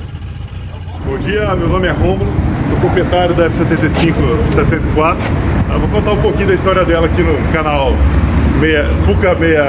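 A middle-aged man speaks calmly and clearly to the listener, close by.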